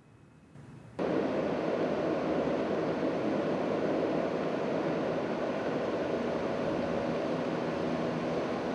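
A ventilation unit hums steadily outdoors.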